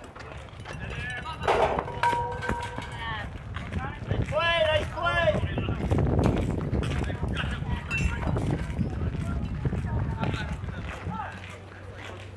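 Young girls shout and cheer outdoors across an open field.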